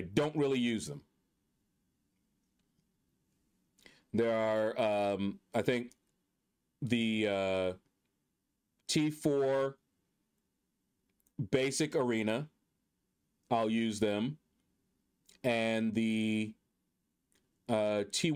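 A man talks with animation into a microphone, in short bursts with pauses.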